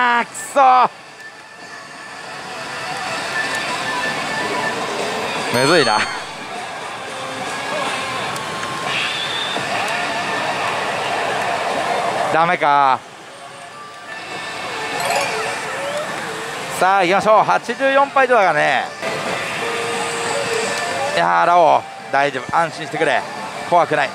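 A voice shouts from a slot machine's loudspeaker.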